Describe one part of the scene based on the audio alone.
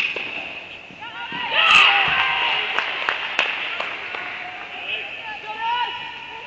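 Young women call out and cheer nearby.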